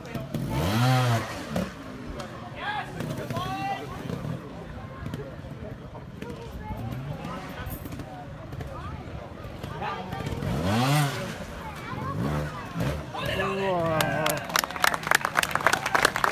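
A two-stroke trials motorcycle revs in short bursts.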